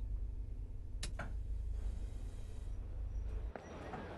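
A train door slides open.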